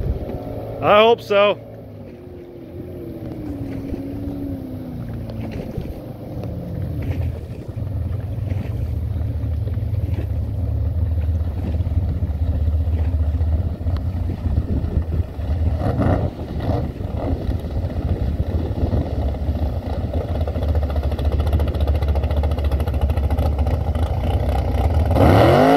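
Water splashes and hisses behind a speeding boat.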